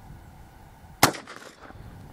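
A single gunshot cracks sharply outdoors.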